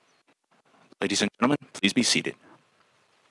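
A man shouts a command loudly outdoors.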